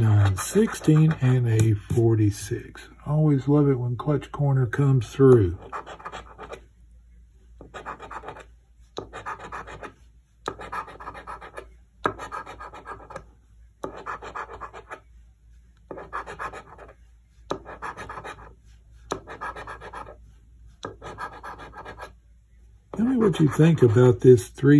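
A coin scratches across a card in short, repeated bursts.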